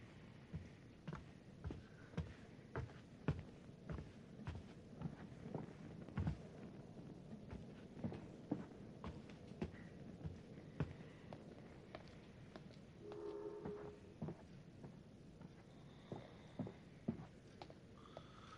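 Footsteps thud steadily on a wooden floor.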